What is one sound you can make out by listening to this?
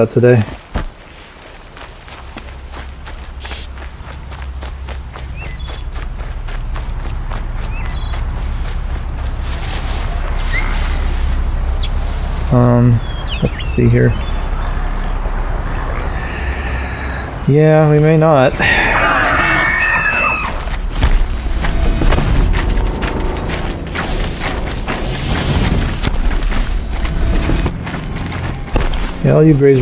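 Footsteps rustle quickly through dense grass and leaves.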